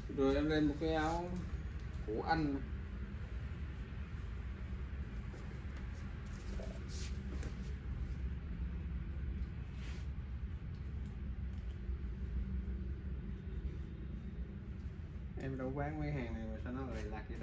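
A cloth jacket rustles as a man handles it.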